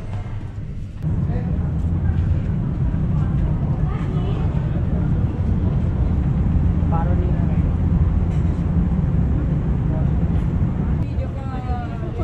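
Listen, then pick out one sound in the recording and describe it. Wind rumbles loudly across an open outdoor space.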